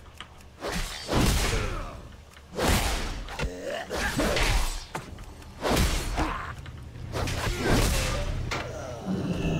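Swords swing and clash in quick bursts.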